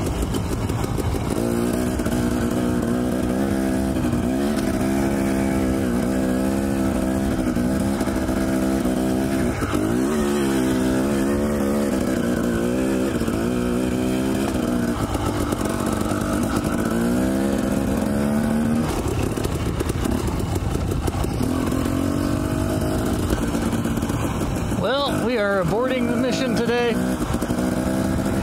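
A dirt bike engine revs and putters up and down close by.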